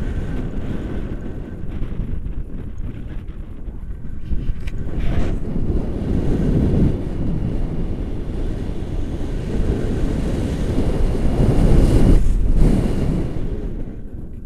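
A man talks with animation close by, partly drowned by wind.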